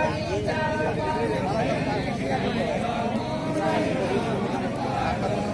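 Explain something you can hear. A crowd of men and women chatter loudly all at once outdoors.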